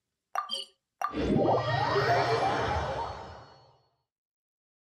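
A swelling whoosh rises and fades away.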